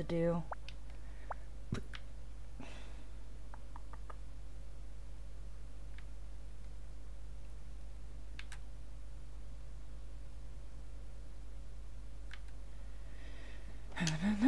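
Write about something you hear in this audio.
Soft interface clicks sound a few times.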